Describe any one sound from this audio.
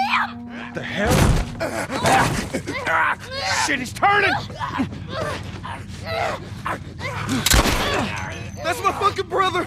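Bodies scuffle and thump loudly in a struggle.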